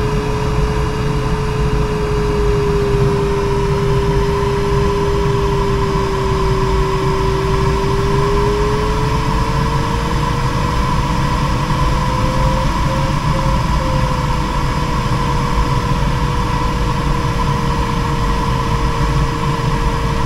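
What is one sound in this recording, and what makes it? Wind rushes steadily past a glider's cockpit.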